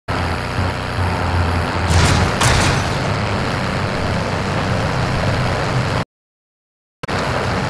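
A truck engine rumbles loudly as it drives over rough ground.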